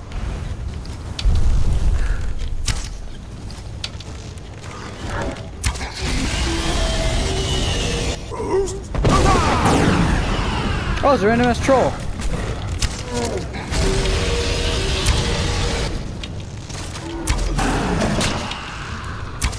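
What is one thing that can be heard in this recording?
A dragon roars.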